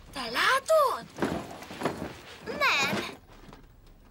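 Cardboard boxes tumble and thud onto the floor.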